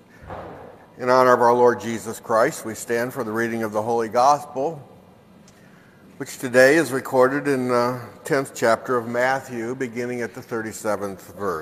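A man speaks steadily into a microphone in a large echoing hall.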